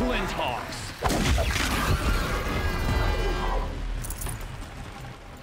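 Metal shards clatter and ring.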